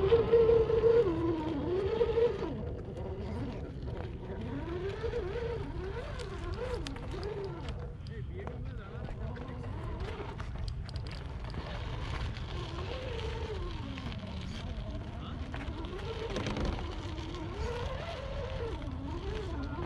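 Small tyres crunch and scrape over dirt and rock.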